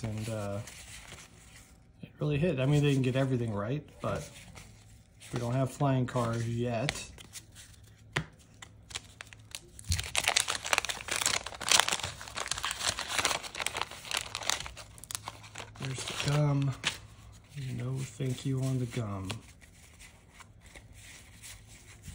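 Trading cards flick and slide against each other.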